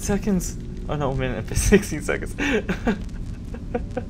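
A young man laughs into a close microphone.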